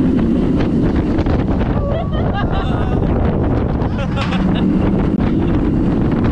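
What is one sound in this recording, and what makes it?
Wind rushes loudly past a microphone.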